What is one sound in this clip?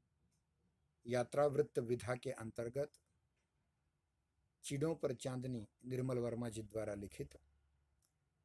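A middle-aged man speaks calmly and close, heard through an online call.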